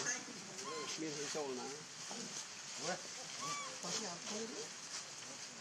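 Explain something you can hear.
A young monkey squeaks and whimpers close by.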